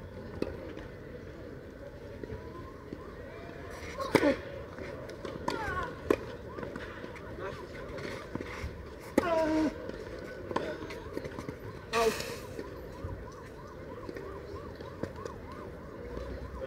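Shoes scuff and slide on a clay court.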